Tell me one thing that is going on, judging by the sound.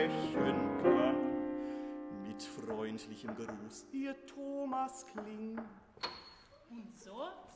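A piano plays a closing passage in an echoing hall.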